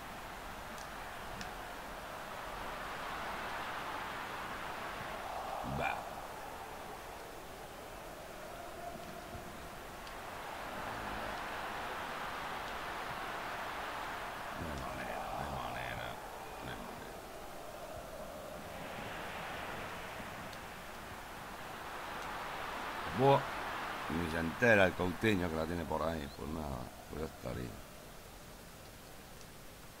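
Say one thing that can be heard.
A large stadium crowd murmurs and cheers, swelling and falling in waves.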